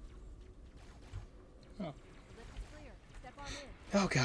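A spiky alien gun fires quick bursts of needles.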